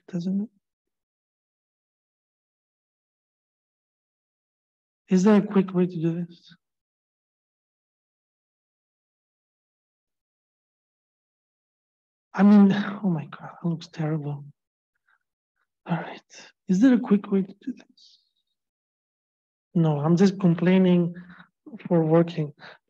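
A man talks calmly into a microphone, explaining in short bursts with pauses.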